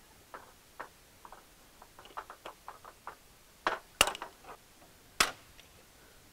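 Metal pliers click and snap against a metal frame.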